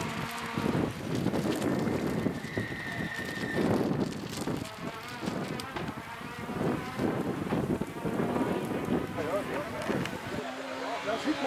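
A rally car engine roars and pops as the car races past at a distance.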